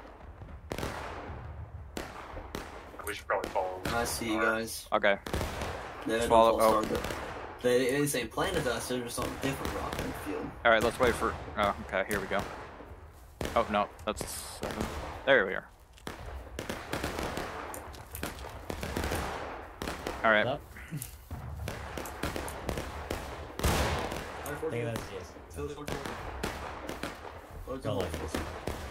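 Rifles fire in many sharp cracks, near and far.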